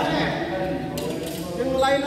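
A racket strikes a shuttlecock.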